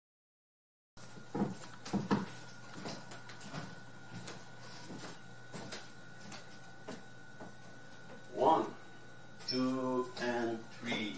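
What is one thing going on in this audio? Footsteps thud slowly on a creaky wooden floor indoors.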